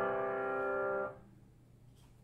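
A piano plays a held chord that quickly fades.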